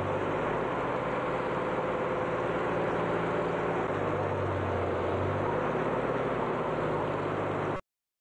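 Water splashes and swishes against a moving boat's hull.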